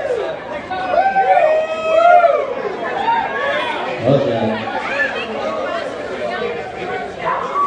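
A crowd of young adults chatters loudly nearby.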